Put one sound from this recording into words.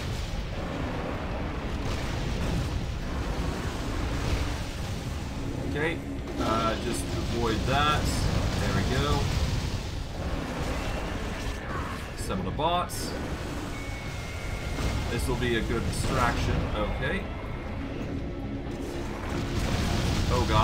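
Spells crackle and boom in a busy fight.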